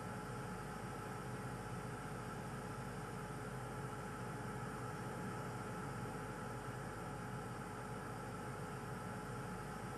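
A jet airliner's engines roar steadily as the plane taxis.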